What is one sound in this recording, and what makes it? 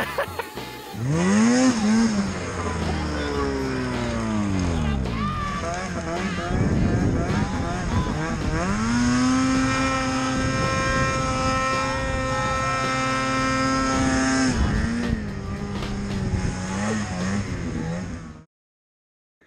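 A snowmobile engine roars and revs loudly up close.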